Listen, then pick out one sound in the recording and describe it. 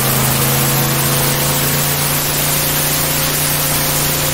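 Water sprays and hisses against the hull of a speeding airboat.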